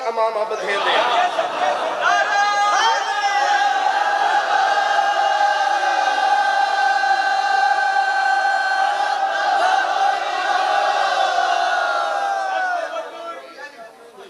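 A man chants in long, drawn-out sung tones through a microphone.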